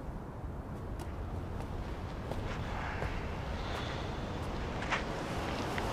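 Footsteps walk closer.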